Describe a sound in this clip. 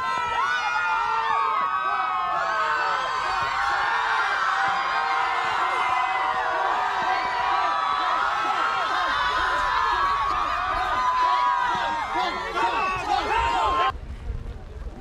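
A crowd of fans screams and cheers excitedly.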